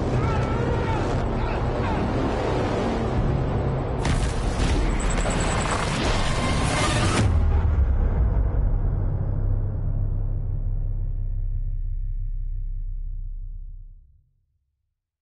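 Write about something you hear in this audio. A strong wind roars loudly.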